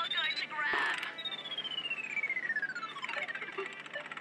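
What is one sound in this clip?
A claw machine's claw moves with a falling electronic whine.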